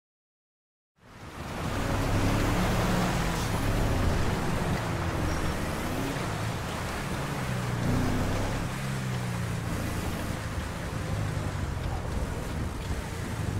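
Car engines rumble and rev.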